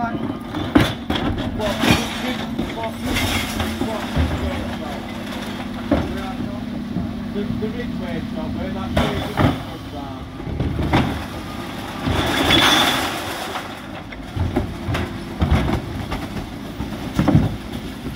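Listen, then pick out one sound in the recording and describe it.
A garbage truck engine hums steadily nearby.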